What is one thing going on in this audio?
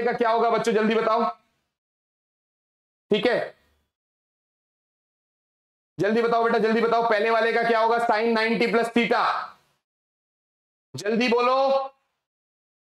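A young man speaks with animation close to a microphone, in short bursts with pauses.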